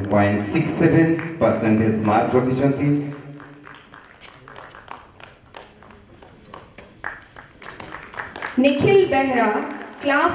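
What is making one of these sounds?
A woman speaks into a microphone over loudspeakers, announcing in an echoing hall.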